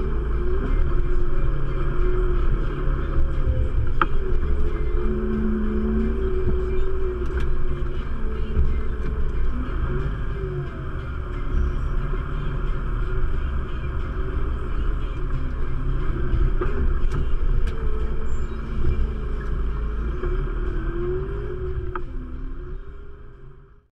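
A machine's engine rumbles and hums steadily.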